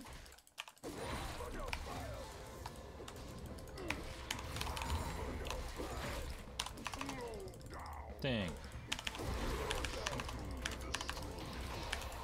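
Game spell and hit effects crackle and clash.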